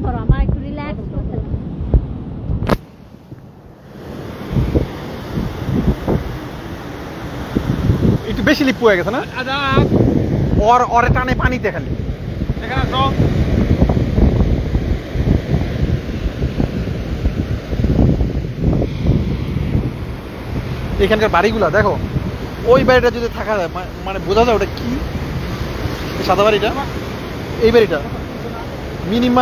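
Waves crash and wash up on a beach.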